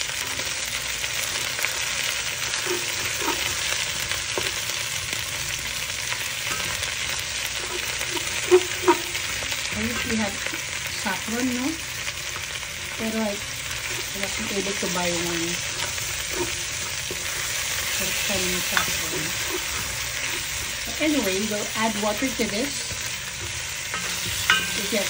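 A spatula scrapes and stirs food in a pot.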